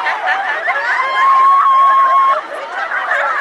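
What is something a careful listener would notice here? A young woman shrieks with laughter close by.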